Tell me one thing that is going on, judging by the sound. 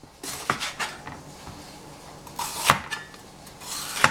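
A knife chops through a pepper.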